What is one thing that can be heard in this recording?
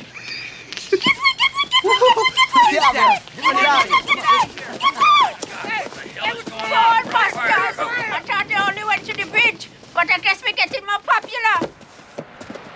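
An elderly woman shouts and screams in distress.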